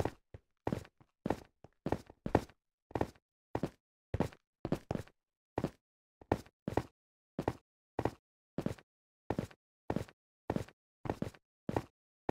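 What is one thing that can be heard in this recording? Footsteps crunch steadily and evenly on soft ground.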